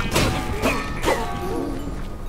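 A sword swings and strikes in quick blows.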